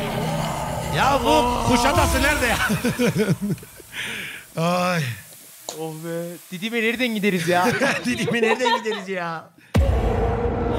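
Several young men laugh loudly and talk excitedly over an online call.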